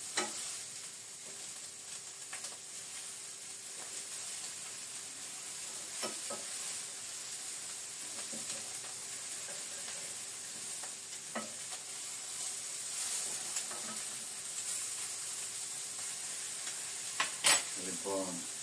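Utensils clink and knock against a pan.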